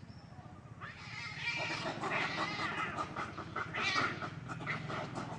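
Monkeys shriek and chatter as they scuffle with a cat.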